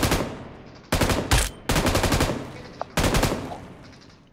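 Rapid gunfire bursts out in loud volleys.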